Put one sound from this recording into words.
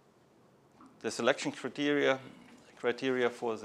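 A middle-aged man speaks calmly through a clip-on microphone.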